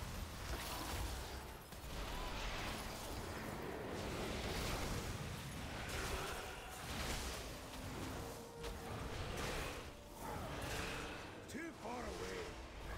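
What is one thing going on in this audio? Spell effects whoosh and crackle in quick bursts throughout a game battle.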